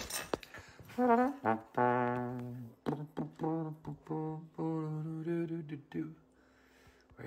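A man sings a few drawn-out notes close to a phone microphone.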